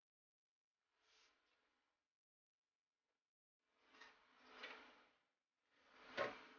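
Cables rustle and scrape close by.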